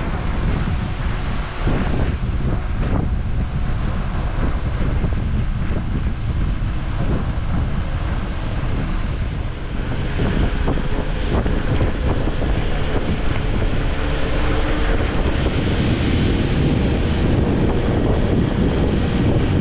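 Leaves rustle and shake in the wind.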